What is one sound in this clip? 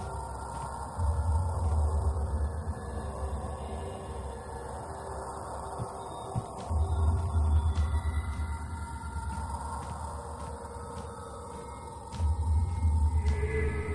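Footsteps tread slowly across a wooden floor.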